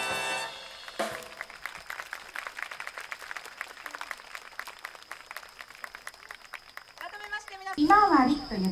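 An audience claps and applauds outdoors.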